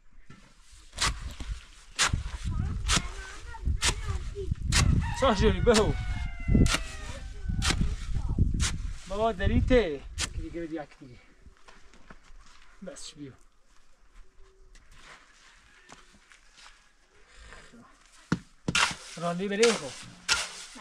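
A shovel scrapes and thuds in wet cement.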